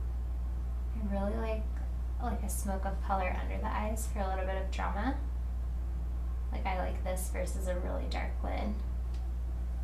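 A woman speaks calmly and close to a microphone.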